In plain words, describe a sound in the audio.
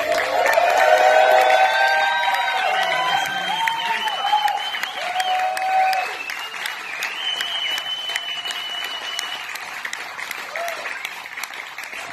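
A small acoustic band plays a lively folk tune.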